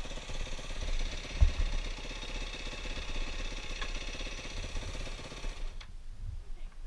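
A dirt bike engine idles with a steady, buzzing rumble, then cuts off.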